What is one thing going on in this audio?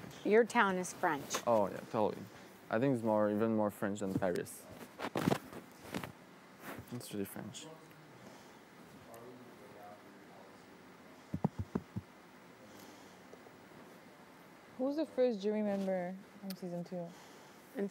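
Young men talk quietly and casually nearby, with pauses between phrases.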